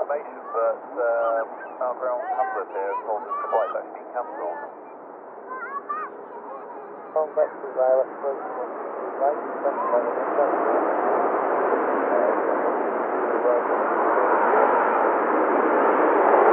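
A jet airliner's engines roar, growing louder as it draws near.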